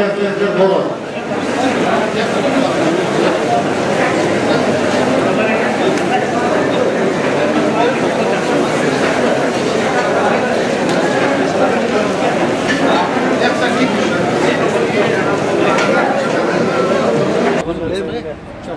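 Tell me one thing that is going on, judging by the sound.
A crowd of men chatters noisily in an echoing hall.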